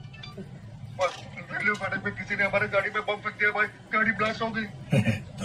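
An older man speaks on a phone with urgency.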